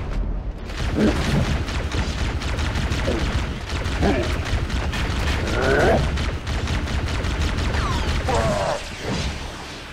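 A creature screeches and growls.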